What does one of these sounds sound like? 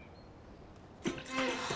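A curtain rustles as it is pulled open.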